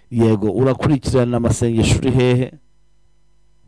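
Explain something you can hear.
A man speaks loudly with animation into a microphone.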